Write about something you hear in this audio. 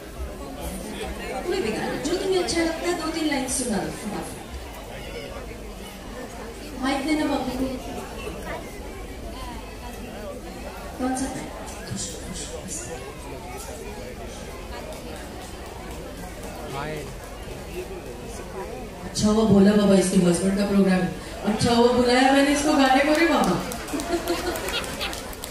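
A woman sings into a microphone over loudspeakers, outdoors.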